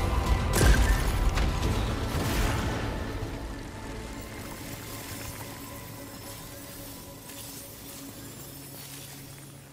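Gunfire crackles and booms in quick bursts.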